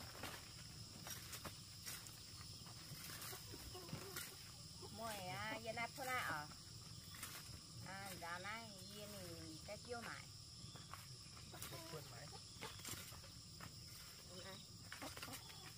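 A man taps a wooden stick on dry ground.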